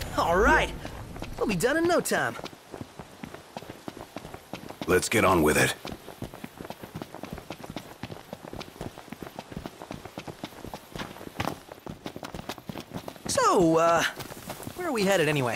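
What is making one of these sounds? Quick footsteps run over dry ground and grass.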